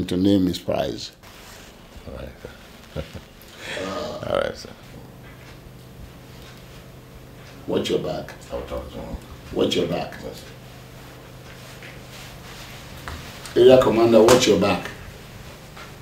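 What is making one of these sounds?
An elderly man speaks firmly and with feeling.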